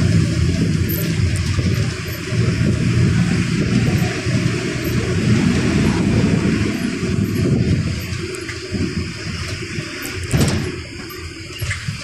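A bus engine rumbles steadily while the bus drives.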